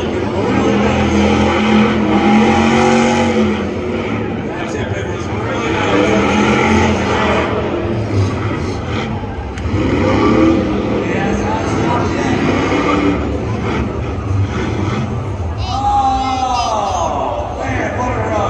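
A car engine revs hard and roars, heard from a distance.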